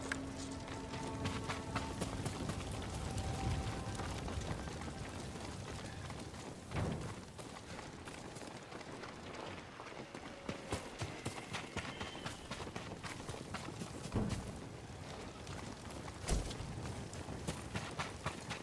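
Footsteps crunch over grass and gravel.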